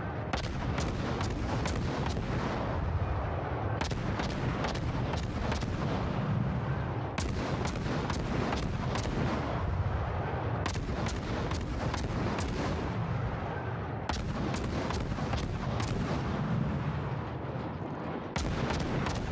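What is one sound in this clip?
Naval guns fire in rapid volleys with deep booming blasts.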